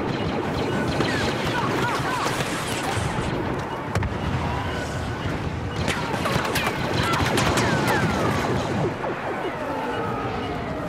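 Laser blasters fire with sharp, falling zaps.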